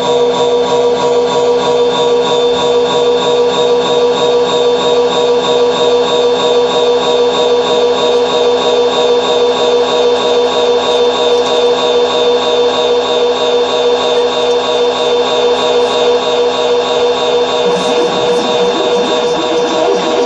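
Loud droning electronic music with steady held tones plays through loudspeakers.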